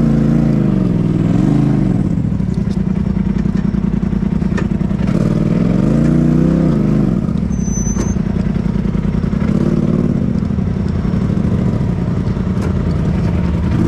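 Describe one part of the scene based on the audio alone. Tyres crunch over dirt and rocks.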